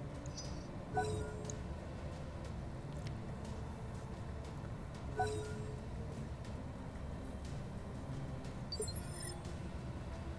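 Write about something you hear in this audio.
A short electronic chime sounds several times.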